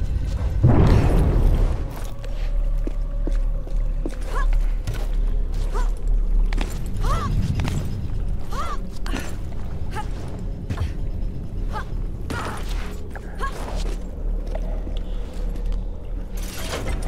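Soft scuffs and thuds sound as a climber grips and steps on stone.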